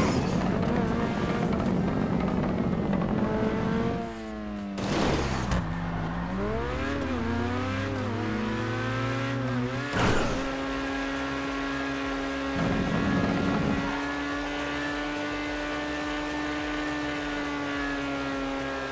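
A car engine revs and hums, rising and falling in pitch.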